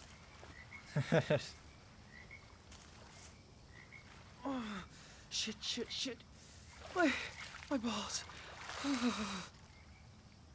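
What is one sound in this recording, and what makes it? A young man talks and laughs with animation, close to a microphone.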